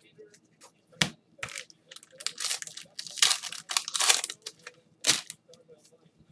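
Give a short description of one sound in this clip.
A plastic wrapper crinkles and tears as it is pulled open.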